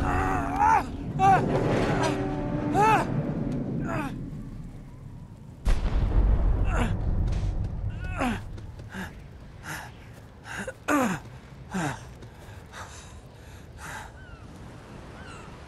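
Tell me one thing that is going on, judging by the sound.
Wind howls over a snowy mountainside.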